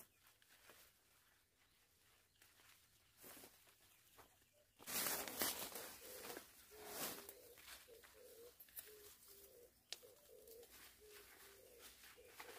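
Leaves rustle and branches shake close by.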